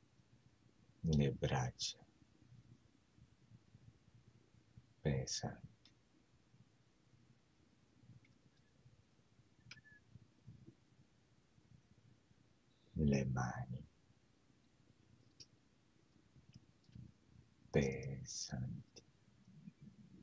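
A man speaks in short, calm phrases close to a microphone.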